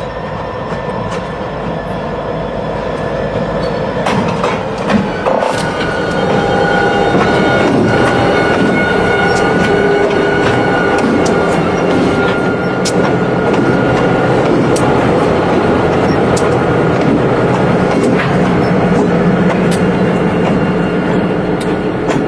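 Diesel locomotives rumble loudly as they approach and pass close by.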